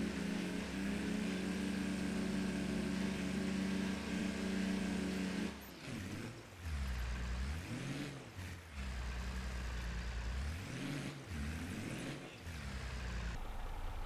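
A tractor engine hums steadily, its pitch rising and falling as it revs.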